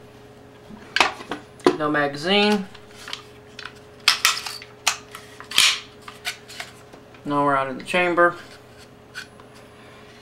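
Parts of a rifle click and clack as hands handle it.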